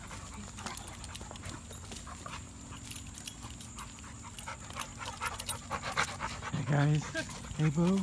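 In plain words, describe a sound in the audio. Dogs growl and scuffle playfully up close.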